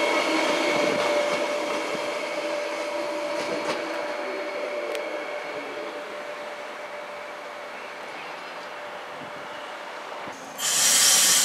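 A train rolls past on the tracks and fades into the distance.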